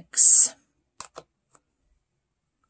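Small metal pans click softly onto a magnetic palette.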